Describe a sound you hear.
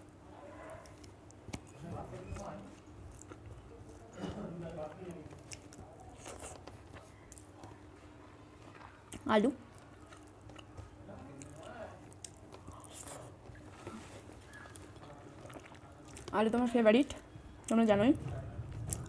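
A young woman chews and smacks her lips close by.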